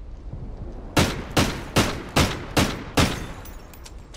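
A rifle fires a quick series of loud shots.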